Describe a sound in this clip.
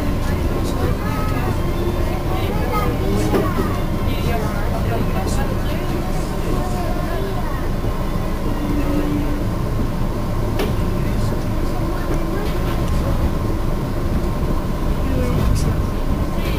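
Wheels squeal and screech on the rails.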